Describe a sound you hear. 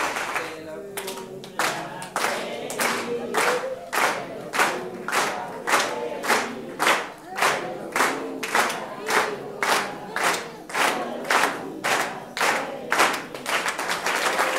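A group of people clap in a steady rhythm.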